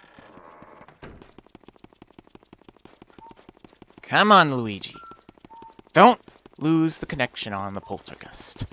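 Quick, light footsteps patter steadily across a floor.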